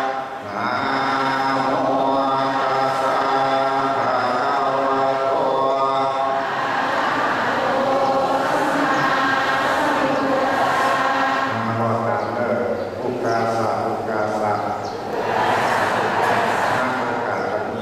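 A man chants in a steady, drawn-out voice through a microphone and loudspeaker.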